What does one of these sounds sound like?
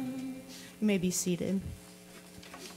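A group of young men and women sings a final note together through microphones.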